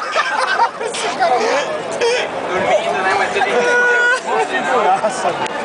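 A crowd chatters and cheers loudly outdoors.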